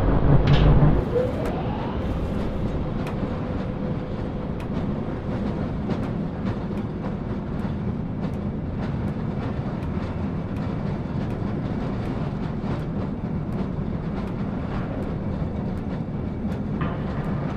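A small rail cart rumbles steadily along tracks.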